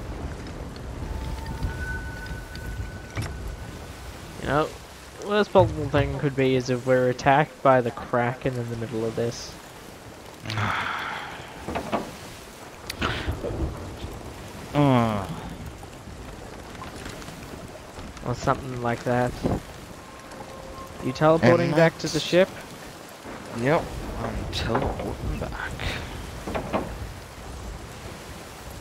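Strong wind howls.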